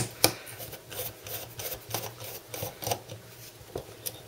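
A screwdriver turns a screw with faint ticking.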